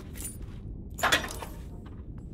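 A metal deposit box clicks and swings open.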